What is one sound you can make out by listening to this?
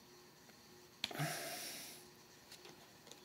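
Cards rustle in a man's hands.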